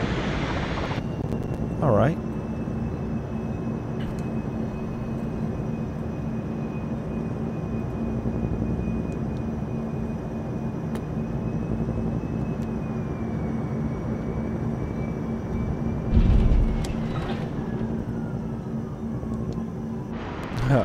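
An engine hums steadily with a faint high whine, heard from inside a cockpit.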